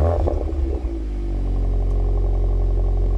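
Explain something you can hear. A car engine settles into a deep, steady idle.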